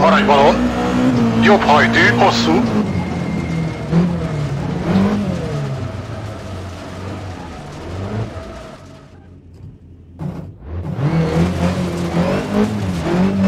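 A racing car engine roars and revs up and down, dropping away briefly before surging again.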